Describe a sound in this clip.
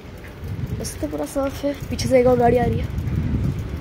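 A boy speaks close to the microphone.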